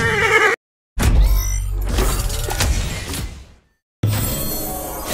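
A treasure chest bursts open with a deep whoosh.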